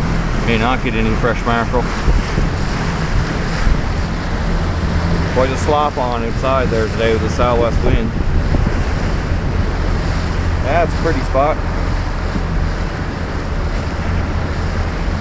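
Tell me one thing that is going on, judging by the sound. Wind buffets loudly outdoors.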